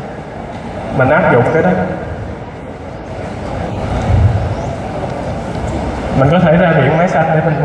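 A man speaks to an audience through a loudspeaker in a large echoing hall.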